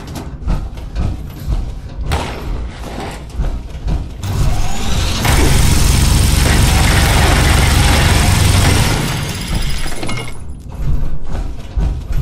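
Heavy metal footsteps thud and clank.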